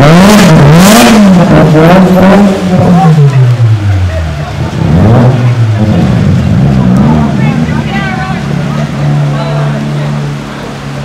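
A car engine revs loudly, rising and falling over and over.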